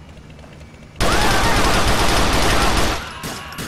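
A pistol fires a rapid string of loud shots.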